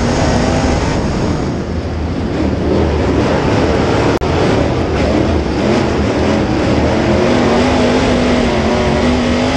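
A race car engine roars loudly up close, its pitch rising and falling as it accelerates through turns.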